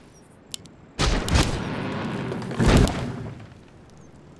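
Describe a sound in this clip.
Magic spells whoosh and crash in a battle.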